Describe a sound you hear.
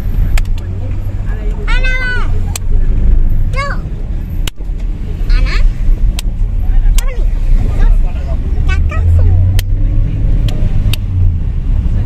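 A young child claps hands.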